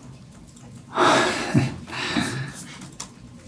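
A man laughs softly into a microphone.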